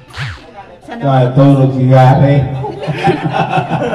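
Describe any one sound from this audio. A group of people sing together loudly and close by.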